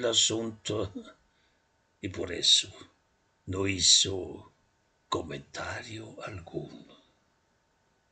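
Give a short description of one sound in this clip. An elderly man speaks slowly and softly, close up.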